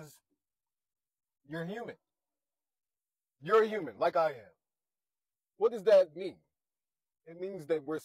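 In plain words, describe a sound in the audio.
A man speaks close to a clip-on microphone in short, expressive bursts with pauses between.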